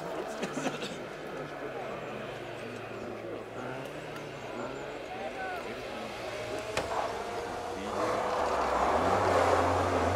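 A second rally car engine approaches and revs loudly.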